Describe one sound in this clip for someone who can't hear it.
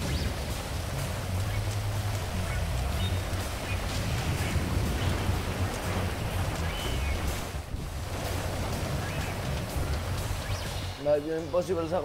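Footsteps thud on a metal roof.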